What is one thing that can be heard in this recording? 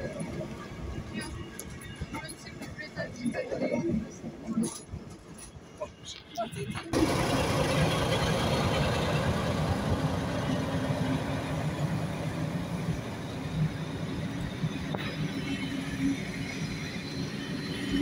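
Passenger coaches roll by, wheels clattering over rail joints.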